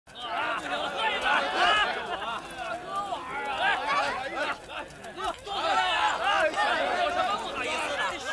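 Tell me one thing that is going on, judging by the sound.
Several men talk and shout loudly with animation outdoors.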